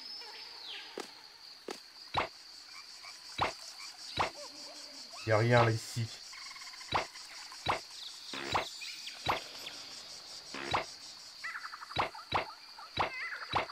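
Bouncy game music plays throughout.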